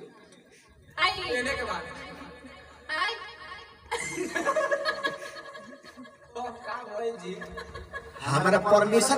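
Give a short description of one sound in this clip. A young man sings into a microphone.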